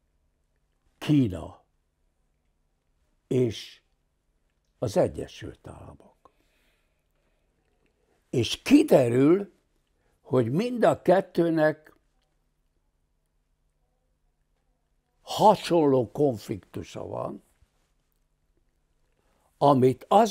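An elderly man speaks calmly and with long pauses, close to a microphone.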